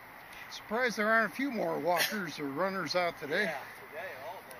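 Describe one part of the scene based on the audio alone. An adult man talks outdoors.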